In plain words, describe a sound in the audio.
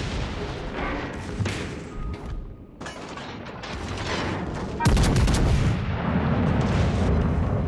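Heavy guns fire with deep, rumbling booms.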